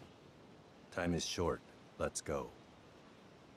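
A man speaks calmly and briefly, close by.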